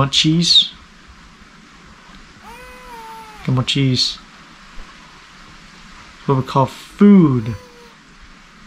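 A young man speaks loudly and with excitement into a microphone, in short bursts.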